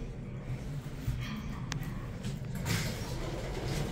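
Elevator doors slide open.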